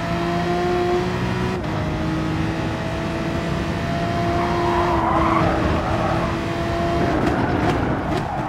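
A racing car engine drones steadily at high speed, briefly dropping in pitch as it shifts gear.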